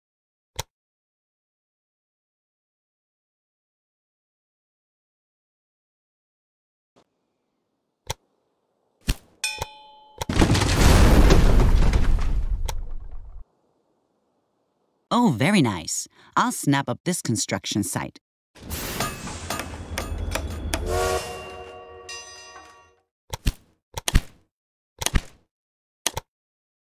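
Sharp interface clicks sound now and then.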